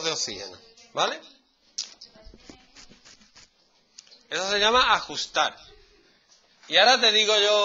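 A man speaks nearby, explaining with animation.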